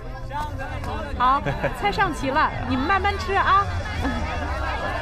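A middle-aged woman speaks cheerfully and loudly.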